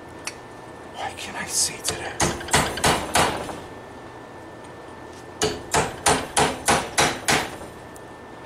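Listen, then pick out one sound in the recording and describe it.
A hammer strikes metal on an anvil with sharp ringing blows in quick bursts.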